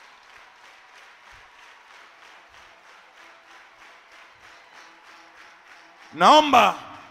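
A crowd claps rhythmically in a large echoing hall.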